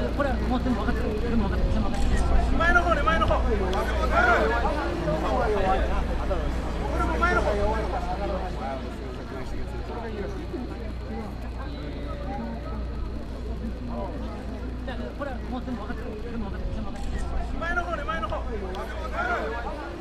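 A crowd of men and women chatter outdoors, with many voices talking at once.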